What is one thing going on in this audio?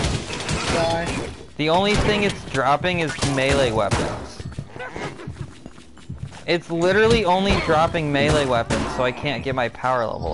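Weapons strike and magic bursts crackle in quick succession.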